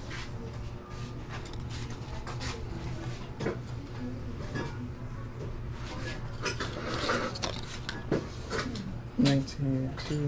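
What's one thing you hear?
Plastic packaging crinkles and rustles in hands.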